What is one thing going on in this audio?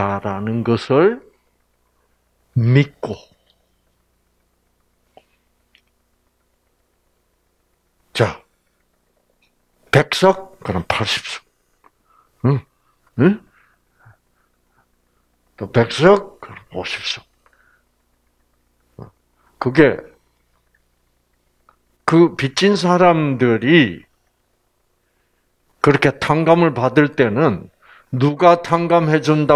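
An elderly man speaks through a microphone in short bursts with pauses.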